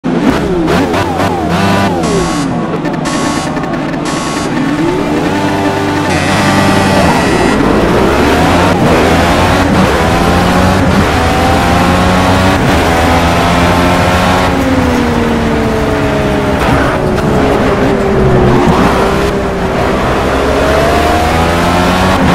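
A racing car engine revs loudly, then roars and whines up and down as it shifts gears.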